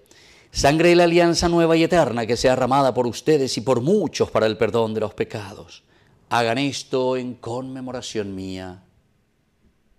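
A middle-aged man chants in a steady voice through a microphone.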